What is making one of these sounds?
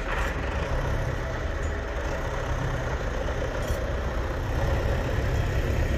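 A tractor engine rumbles nearby.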